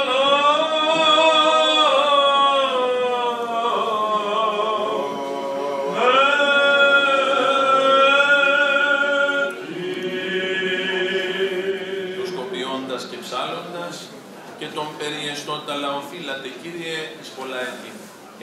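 A man chants in a loud, sustained voice through a microphone, echoing in a large hall.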